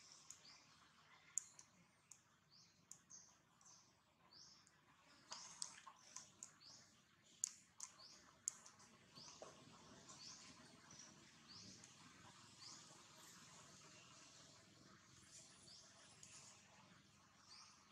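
A baby monkey squeaks in short high cries.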